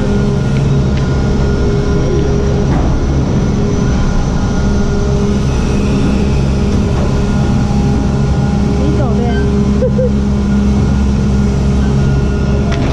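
Gondola cabins clatter as they roll through the station.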